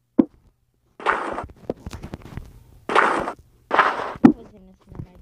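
Blocks of stone break with gritty crunches.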